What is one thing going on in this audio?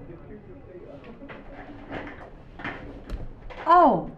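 A woman speaks through an online call.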